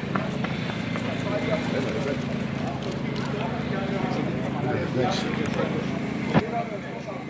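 A crowd of men talk and shout close by outdoors.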